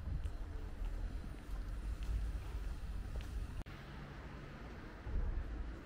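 Wind buffets the microphone outdoors with a low rumble.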